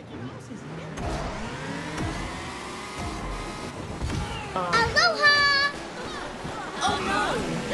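Kart engines roar and rev as a race starts.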